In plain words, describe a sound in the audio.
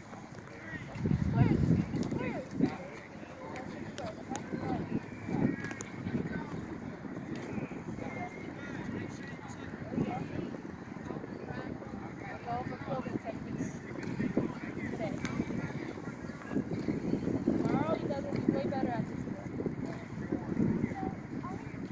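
Children's voices chatter and call out nearby outdoors.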